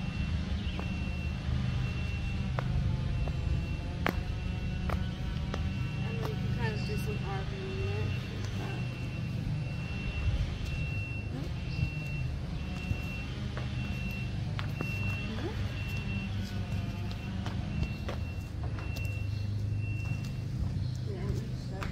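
Footsteps patter on concrete as people run and dance.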